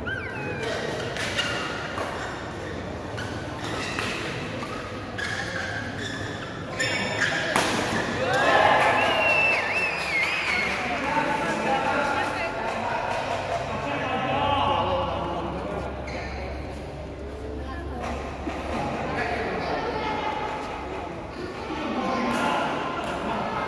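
A crowd of spectators chatters in the background of a large echoing hall.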